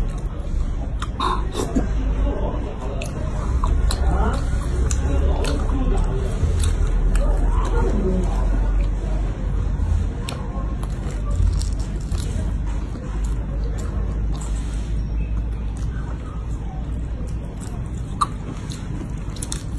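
A woman chews and slurps noisily close up.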